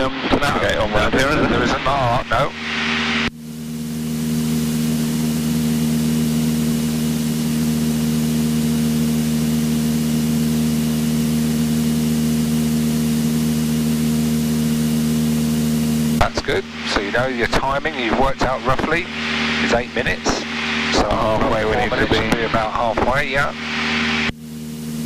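A man speaks through a headset intercom.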